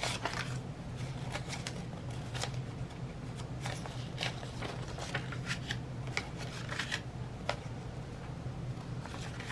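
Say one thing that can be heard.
Paper banknotes rustle and flick as hands count them.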